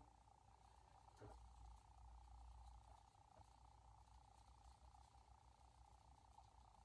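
Artificial pine branches rustle softly under a hand.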